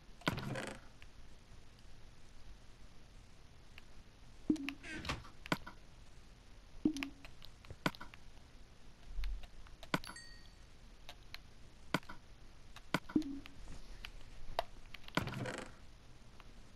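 A wooden chest creaks open and thumps shut.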